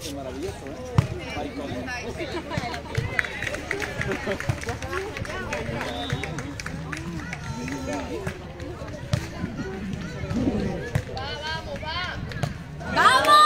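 A volleyball is struck with a dull thump.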